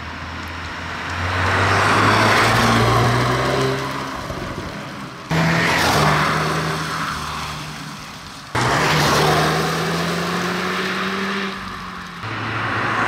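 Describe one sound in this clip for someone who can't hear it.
Tyres swish on the road as a car speeds past.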